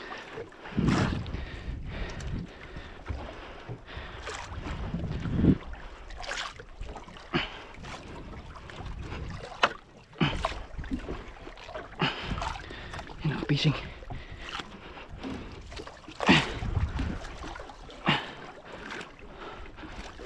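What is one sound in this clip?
Sea water splashes and laps against a boat's hull.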